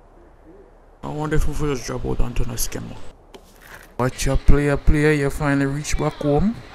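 A young man talks with animation in a made-up babble.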